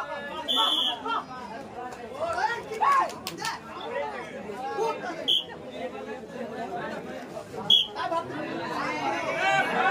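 A crowd of young men shouts and cheers loudly.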